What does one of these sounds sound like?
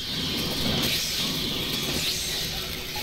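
A cutting torch hisses steadily.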